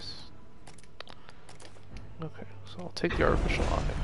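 Short game menu clicks tick in quick succession.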